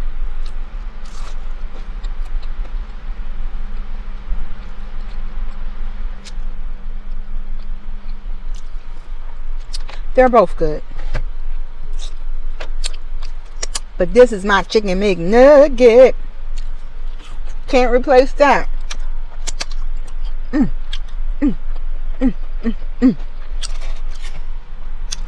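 A woman chews and crunches food close by.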